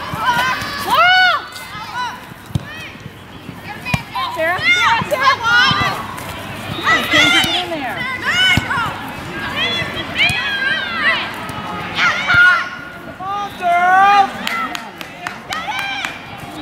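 Teenage girls shout to each other across an open field.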